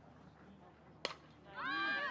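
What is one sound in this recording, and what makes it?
A bat cracks sharply against a softball.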